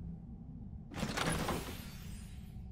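A wooden chest lid creaks open.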